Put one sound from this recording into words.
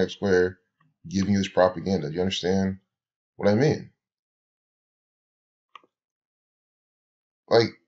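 A young man talks calmly into a close microphone, pausing between phrases.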